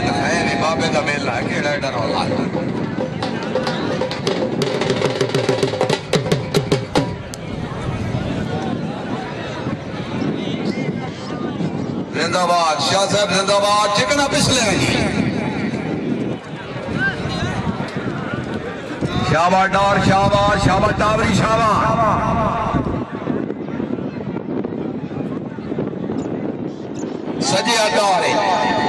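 A large crowd murmurs and cheers outdoors.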